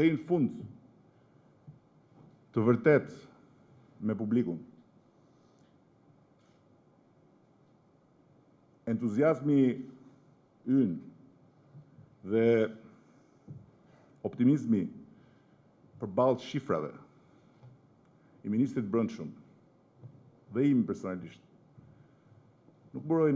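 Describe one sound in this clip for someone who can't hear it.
A middle-aged man speaks slowly and deliberately into a microphone, with long pauses.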